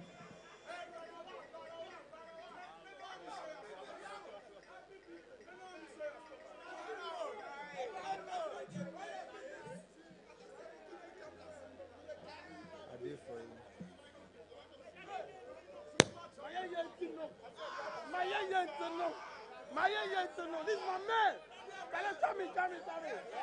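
A large crowd chatters and murmurs in a big echoing hall.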